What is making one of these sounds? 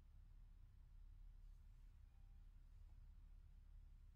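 Fabric rustles softly as a person shifts on a mat.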